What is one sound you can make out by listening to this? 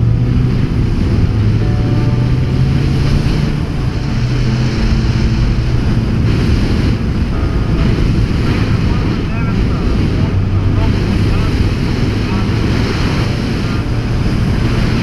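A motorcycle engine hums steadily and rises and falls in pitch.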